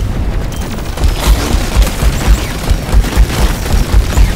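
Heavy weapon blasts thump rapidly and loudly.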